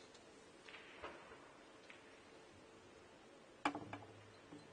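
A cue strikes a snooker ball with a sharp tap.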